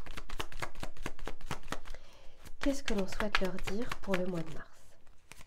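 Playing cards are shuffled with quick, rapid riffling clicks.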